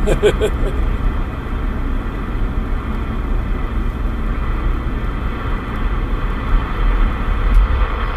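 A car engine hums and tyres roll steadily along a road.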